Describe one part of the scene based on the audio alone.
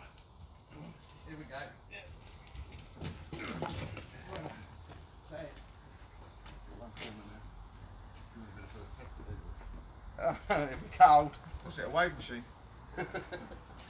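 Men talk and shout nearby outdoors.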